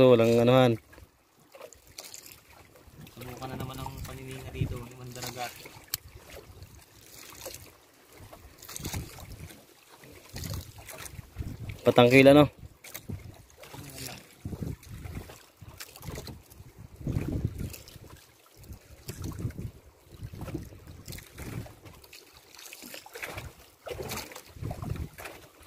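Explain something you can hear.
A wet fishing net rustles and drags as it is hauled into a boat.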